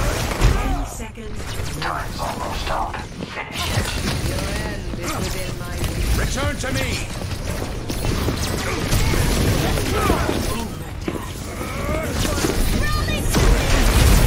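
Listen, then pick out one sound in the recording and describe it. Energy weapon shots fire in quick bursts.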